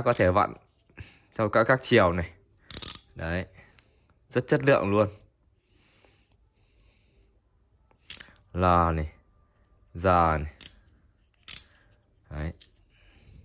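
A ratchet wrench clicks as its head is turned by hand.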